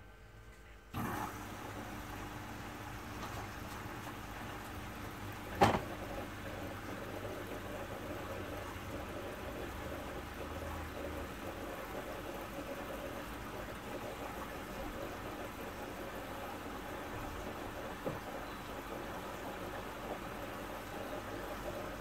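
A washing machine hums and whirs steadily.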